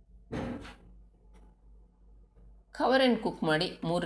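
A metal lid clanks down onto a pot.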